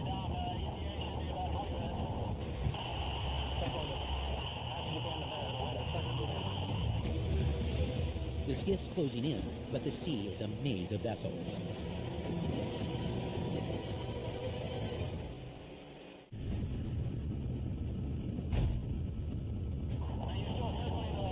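A man speaks calmly through a headset radio.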